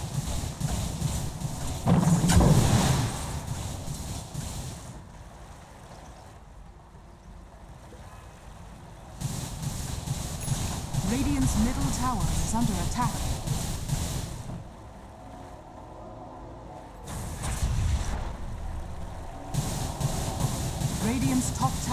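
Magic spells whoosh and crackle.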